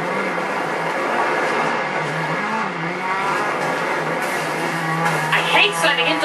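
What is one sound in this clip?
Car tyres squeal while skidding on a dirt road.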